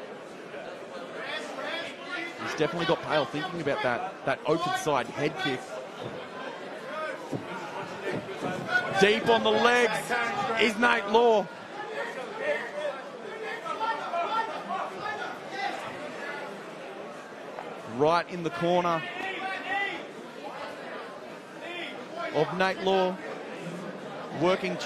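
A crowd shouts and cheers in a large hall.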